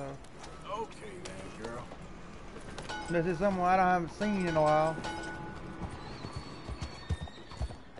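A horse's hooves clop on cobblestones.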